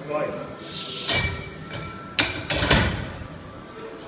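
A barbell clanks loudly against its rack.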